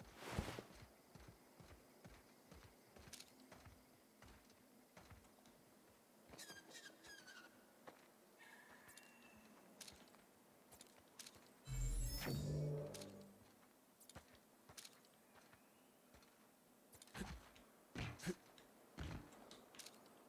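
Footsteps crunch steadily on hard ground.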